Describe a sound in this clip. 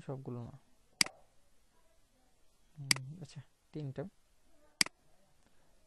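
A computer mouse clicks sharply a few times.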